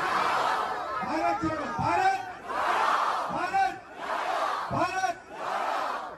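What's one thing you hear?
A man shouts to the crowd close by.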